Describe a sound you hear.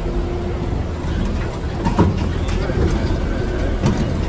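Another tram drives past close by.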